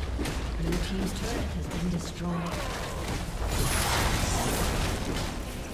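Fantasy spell blasts and weapon hits of a video game battle crackle and boom.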